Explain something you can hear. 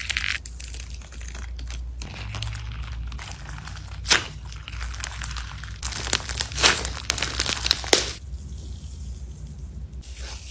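Sticky slime squelches and stretches between fingers.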